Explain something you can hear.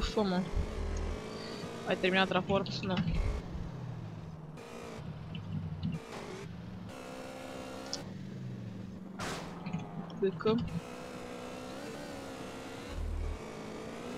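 A motorcycle engine roars and revs up and down.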